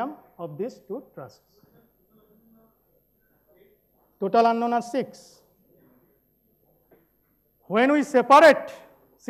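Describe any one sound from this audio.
A man lectures with animation into a microphone.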